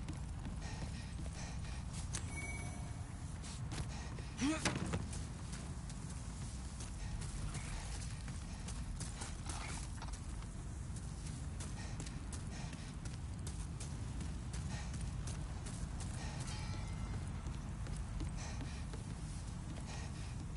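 Footsteps thud softly on wooden boards.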